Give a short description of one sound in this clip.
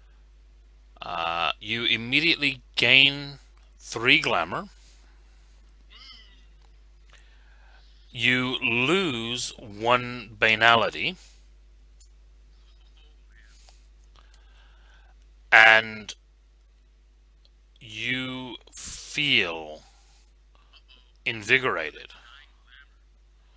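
Several men talk and laugh with animation over an online call, heard through headset microphones.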